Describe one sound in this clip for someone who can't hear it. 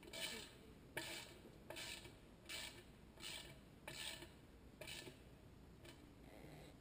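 A metal hand tool scrapes and clicks against a welded wire fence panel.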